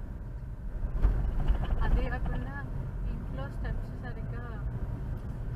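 Vehicle horns honk repeatedly nearby.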